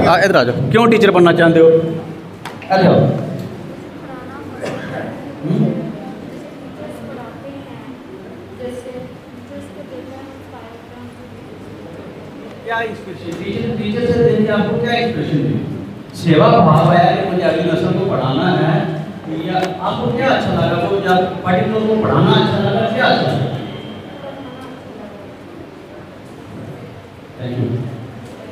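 A man speaks with animation into a microphone, heard through a loudspeaker in an echoing room.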